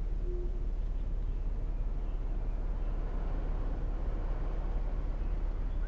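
A bus engine rumbles steadily at idle.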